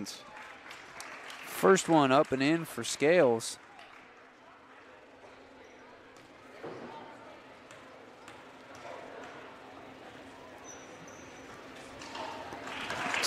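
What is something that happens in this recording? A crowd of spectators murmurs in a large echoing gym.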